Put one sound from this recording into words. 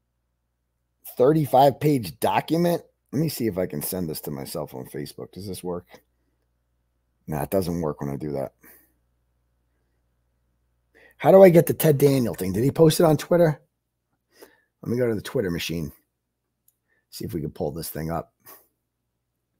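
A middle-aged man speaks calmly and close to a microphone, in short bursts with pauses.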